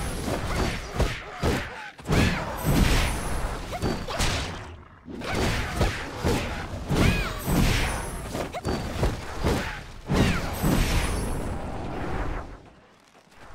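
Weapons clash and strike loudly in a fight.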